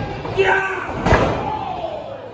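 A body slams onto a wrestling ring mat with a loud thud.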